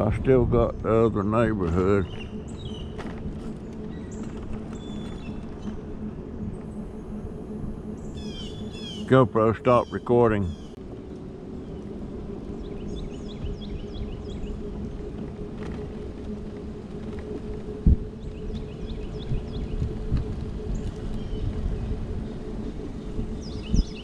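Small tyres roll over a paved road.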